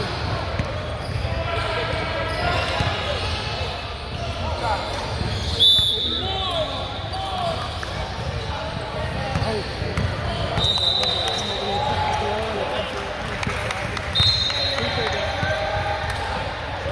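Young players talk and call out in a large echoing gym.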